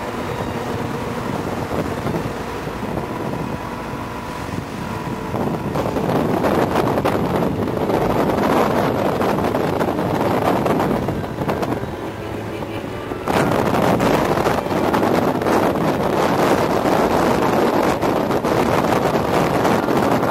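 Wind buffets a microphone on a motorcycle riding at highway speed.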